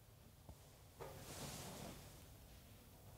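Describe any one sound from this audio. A young woman sighs softly close by.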